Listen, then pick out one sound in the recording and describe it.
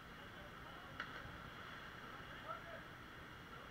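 A person splashes into the water.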